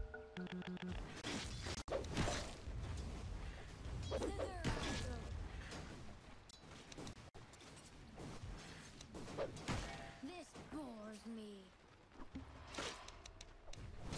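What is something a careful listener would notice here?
Video game battle effects clash and crackle.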